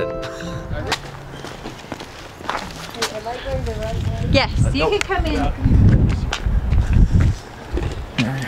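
Footsteps scuff on a paved path.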